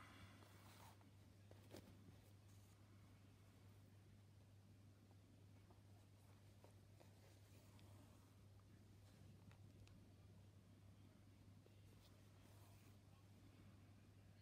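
Soft fabric rustles and crinkles close by as hands handle it.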